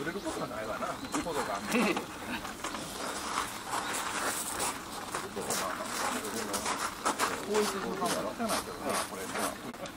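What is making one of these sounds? Ropes creak and rub as men tie them tight.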